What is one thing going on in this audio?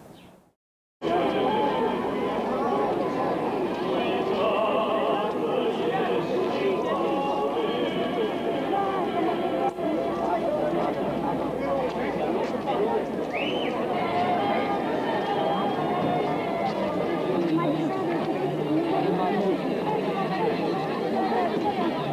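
A crowd of men and women chatters loudly all around, outdoors.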